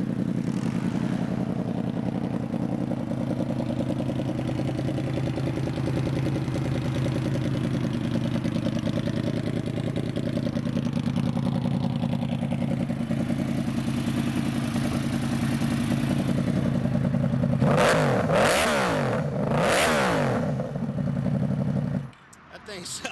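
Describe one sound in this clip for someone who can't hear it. A motorcycle engine idles with a steady, deep rumble.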